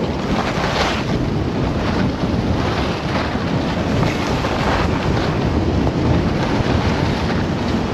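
Skis carve and scrape across packed snow.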